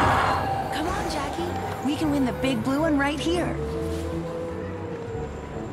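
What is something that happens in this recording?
A young woman speaks with animation.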